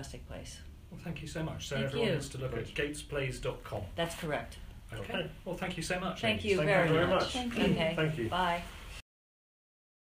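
A woman talks calmly nearby.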